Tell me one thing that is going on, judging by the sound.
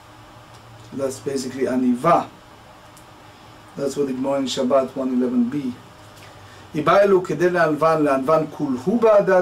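A middle-aged man speaks calmly and close to a microphone, in short phrases with pauses.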